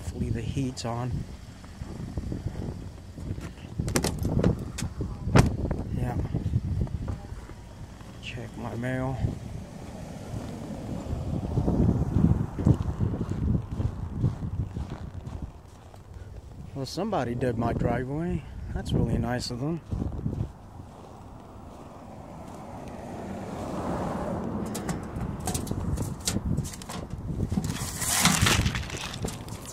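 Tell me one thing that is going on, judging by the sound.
Footsteps crunch on snow and ice.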